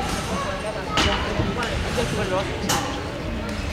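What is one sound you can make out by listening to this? A trampoline thumps as a gymnast bounces on it in an echoing hall.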